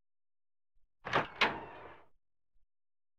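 A door creaks open slowly.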